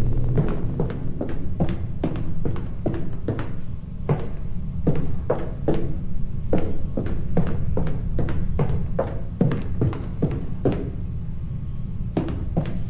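Footsteps thud steadily on a hard floor in a large, echoing room.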